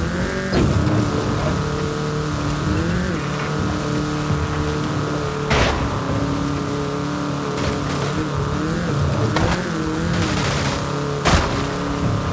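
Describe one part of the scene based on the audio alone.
A car body thumps over bumps.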